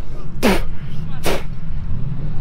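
A man slurps a drink close by.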